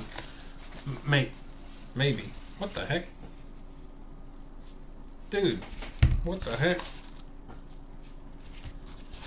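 A padded paper envelope crinkles as a man opens it.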